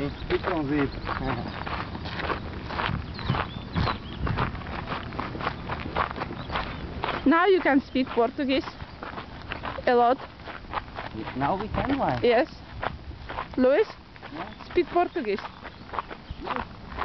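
Footsteps crunch on a gravel track.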